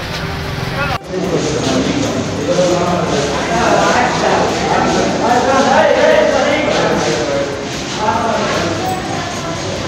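A crowd of men murmurs and talks over each other in an echoing room.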